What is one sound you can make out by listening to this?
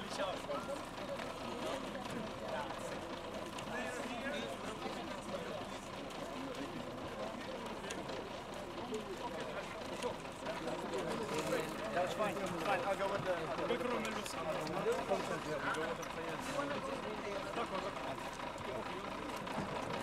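A crowd of young men chatter nearby.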